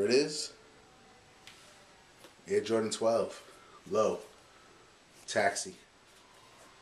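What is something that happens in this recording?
A man speaks calmly and close by, in short bursts.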